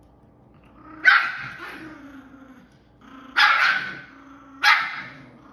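A dog barks loudly a few times nearby.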